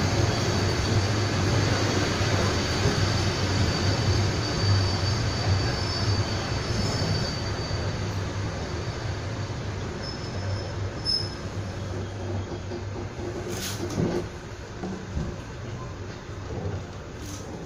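A train rumbles steadily along the tracks, slowing down gradually.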